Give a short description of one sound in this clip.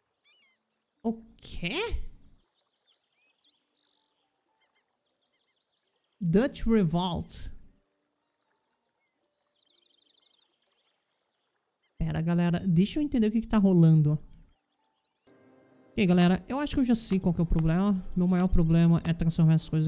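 A man talks calmly and closely into a microphone, in short bursts with pauses.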